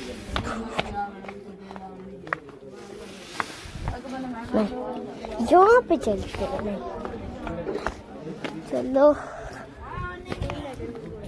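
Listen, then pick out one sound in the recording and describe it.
A boy talks with animation close to a phone's microphone.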